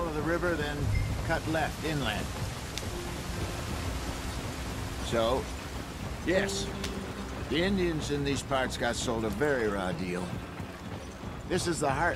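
Wagon wheels rattle and creak over rough ground.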